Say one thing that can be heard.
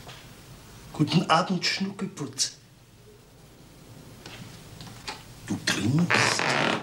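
A middle-aged man speaks close by in a calm, friendly voice.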